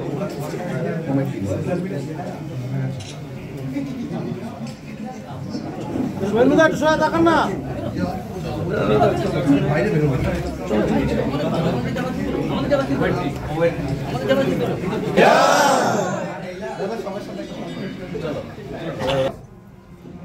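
A crowd of young men and women chatter and murmur close by.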